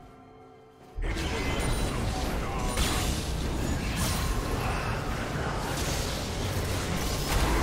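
Game spell effects whoosh and burst.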